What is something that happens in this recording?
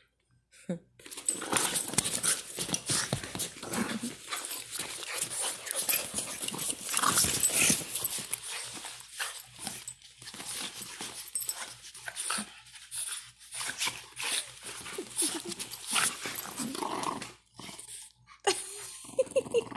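Two dogs wrestle and scuffle playfully.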